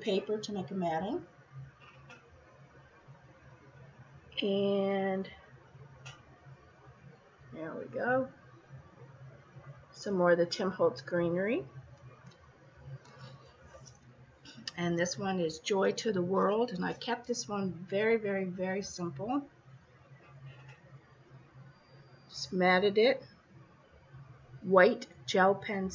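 A middle-aged woman talks calmly and close up, in short bursts with pauses.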